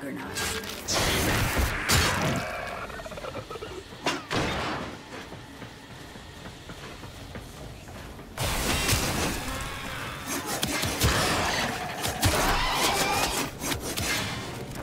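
Gunfire and blasts ring out in rapid bursts.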